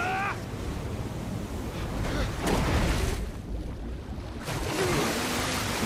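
Water crashes and surges loudly.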